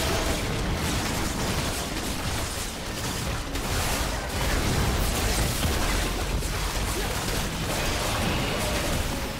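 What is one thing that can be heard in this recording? Magic blasts and spell effects crackle and whoosh in a fast game battle.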